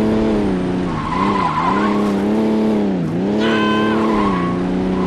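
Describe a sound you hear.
Car tyres screech as the car skids around a corner.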